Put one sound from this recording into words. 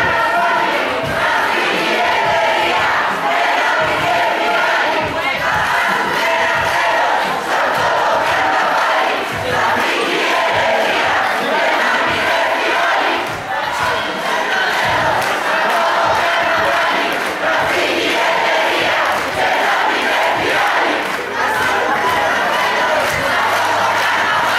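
A large crowd of men and women chants loudly outdoors.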